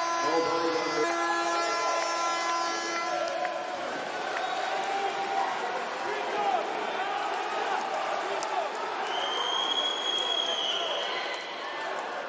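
Swimmers splash and churn through the water.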